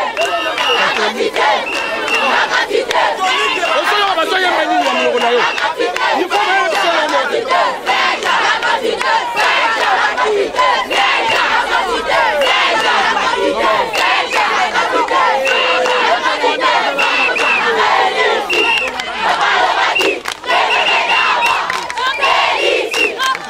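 Hands clap in the crowd now and then.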